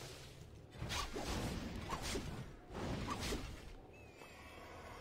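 A young man commentates with animation through a microphone.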